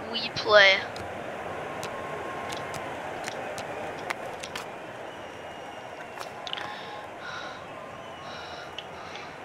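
Hockey sticks clack against the puck on ice.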